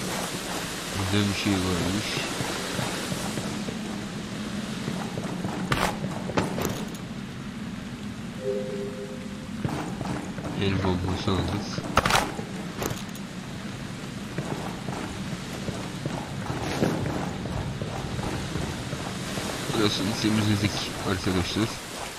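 A young man talks into a headset microphone in short bursts.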